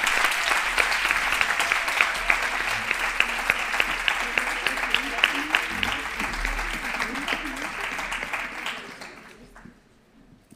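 A crowd applauds in a large hall, then the clapping dies away.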